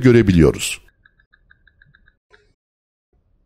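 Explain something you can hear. A metal detector beeps in quick, short, repeated pulses.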